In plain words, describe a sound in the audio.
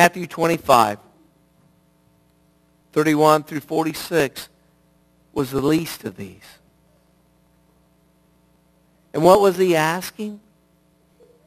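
A middle-aged man speaks with animation through a headset microphone and loudspeakers, pausing between phrases.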